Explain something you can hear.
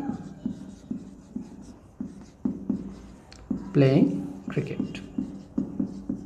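A marker squeaks and taps against a whiteboard.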